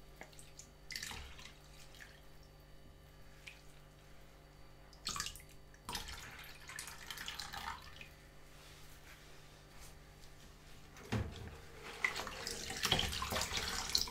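Water sloshes and splashes in a sink.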